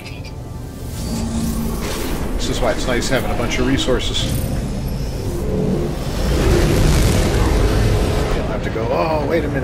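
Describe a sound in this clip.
A spaceship engine hums and swells into a roar as it lifts off.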